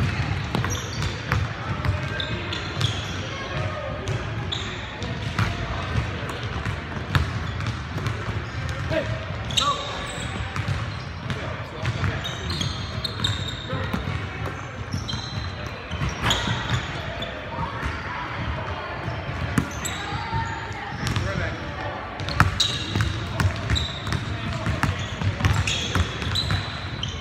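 A basketball bounces on a wooden court, echoing in a large hall.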